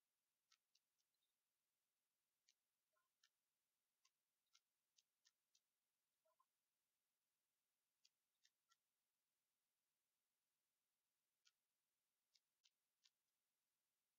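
A computer mouse clicks sharply, several times.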